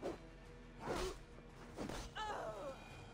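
A blade strikes with a sharp clash.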